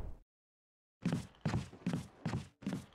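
Footsteps thud on a wooden floor in an echoing corridor.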